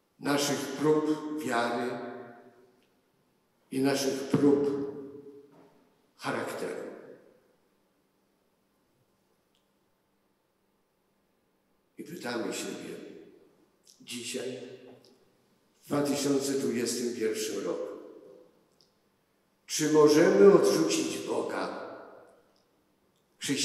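An elderly man speaks slowly and solemnly into a microphone, in phrases with pauses, in a large echoing hall.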